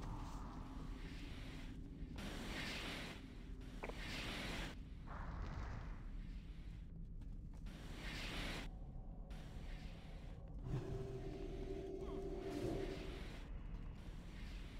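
Magic spells whoosh and crackle in repeated bursts.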